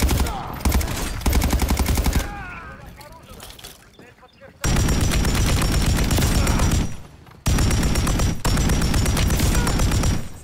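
A rifle fires in rapid, loud bursts.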